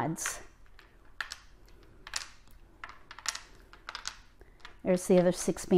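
Plastic tiles click and clack against each other.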